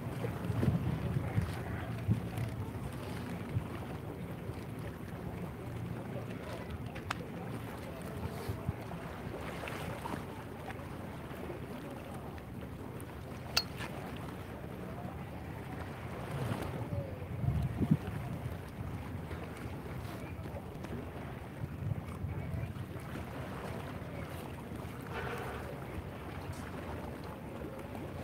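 Water laps gently against a wall.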